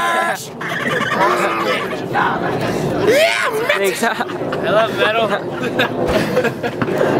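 Young men talk and laugh together close by, outdoors.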